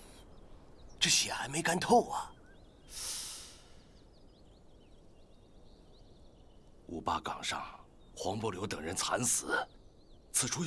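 An elderly man speaks with alarm.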